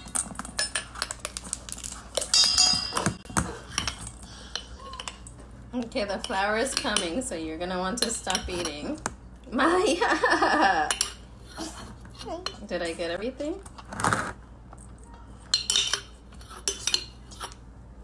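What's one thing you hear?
Dry ingredients are poured into a metal mixing bowl.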